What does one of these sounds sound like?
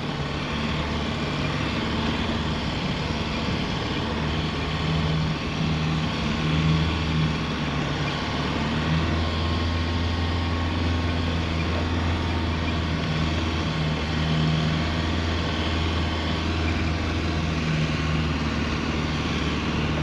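Tyres crunch and churn through snow.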